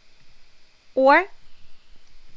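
A young woman laughs briefly.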